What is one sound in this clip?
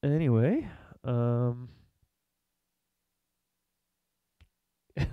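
A young man sings close into a microphone in short held notes.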